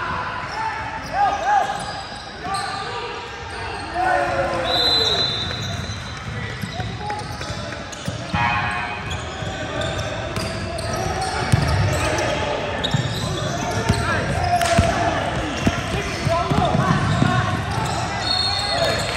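Young boys shout and call out across an echoing gym.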